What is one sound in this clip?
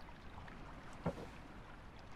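A wooden plank thuds down onto boards.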